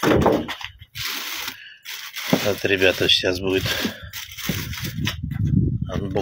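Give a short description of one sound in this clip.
Plastic wrap rustles and crinkles.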